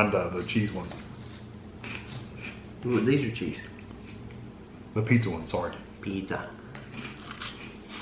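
A man crunches on a crispy snack.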